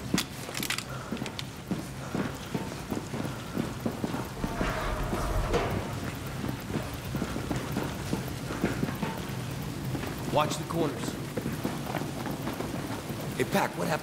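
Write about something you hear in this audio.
Boots thud steadily as soldiers walk on a hard floor.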